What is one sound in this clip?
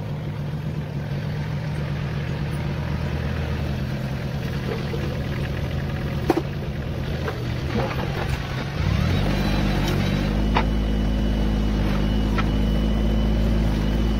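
A small tractor engine rumbles steadily close by, its pitch shifting around halfway.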